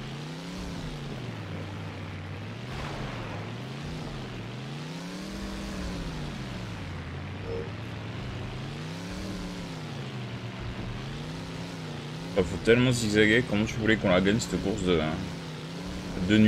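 A racing car's engine revs up and down over and over.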